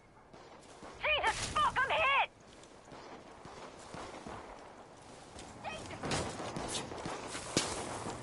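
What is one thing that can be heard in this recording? Footsteps rustle through tall dry grass.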